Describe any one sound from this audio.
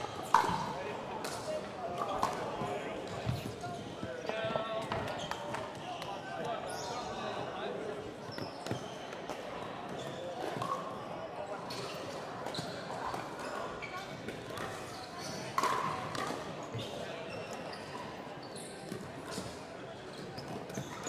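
Paddles strike a plastic ball with sharp pops in a large echoing hall.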